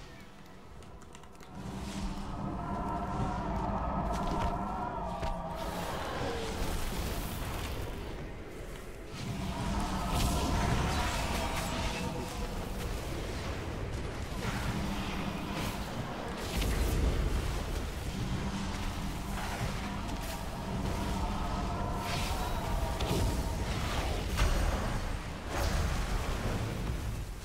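Magic spells burst and crackle in a fast fight.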